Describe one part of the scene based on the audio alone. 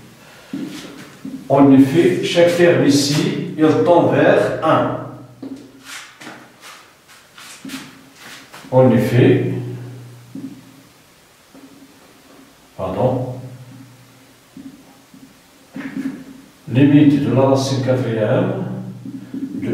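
A middle-aged man speaks calmly, explaining.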